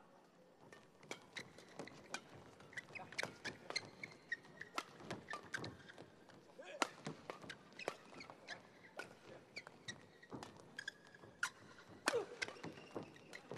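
Rackets smack a shuttlecock in a fast rally.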